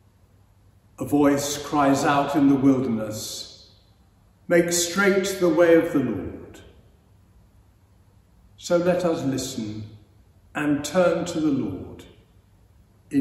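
An elderly man speaks slowly and calmly in a reverberant hall.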